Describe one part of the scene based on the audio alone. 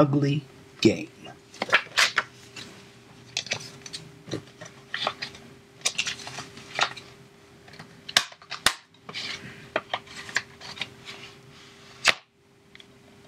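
Something rustles and taps close to a microphone.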